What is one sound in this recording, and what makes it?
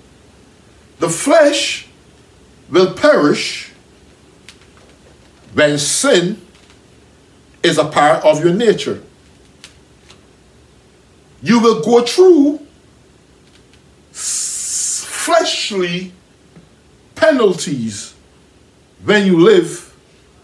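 A man preaches with animation into a close microphone, in short bursts with pauses.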